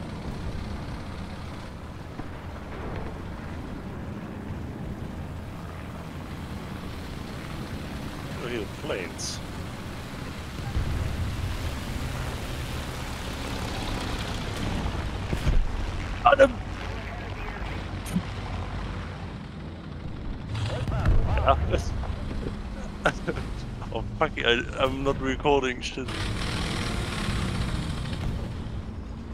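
A heavy vehicle engine rumbles steadily.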